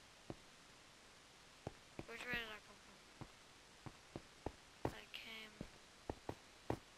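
Footsteps tap at a steady walking pace on hard ground.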